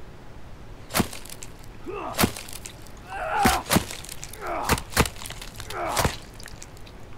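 An axe chops into flesh with heavy, wet thuds.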